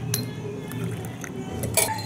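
Glasses clink together.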